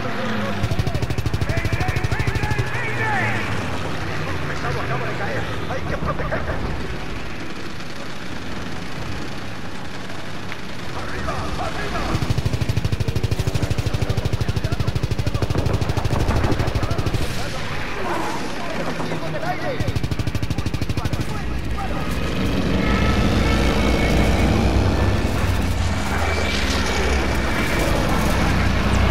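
Explosions burst nearby.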